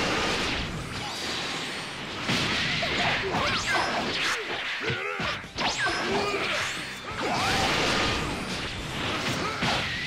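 Energy blasts roar and crackle.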